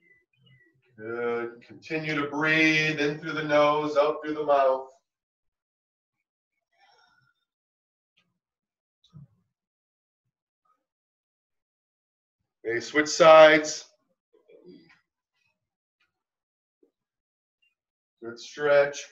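A middle-aged man talks as he instructs, in short bursts.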